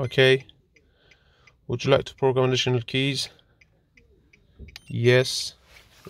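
Buttons click softly on a handheld device.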